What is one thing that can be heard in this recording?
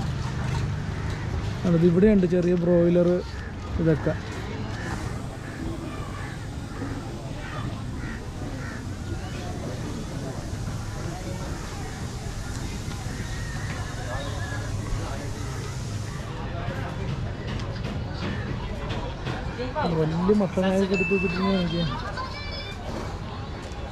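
People talk faintly in the background outdoors.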